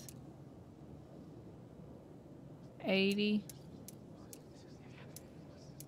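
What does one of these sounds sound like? A safe's combination dial clicks as it turns.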